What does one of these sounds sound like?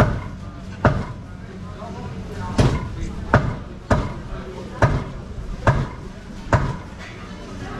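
A cleaver chops meat on a wooden block with sharp thuds.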